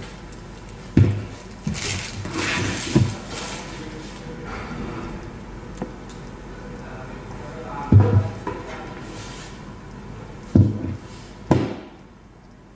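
A plastic food container knocks and rattles as hands handle it.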